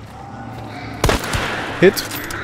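A rifle fires a single loud shot that echoes outdoors.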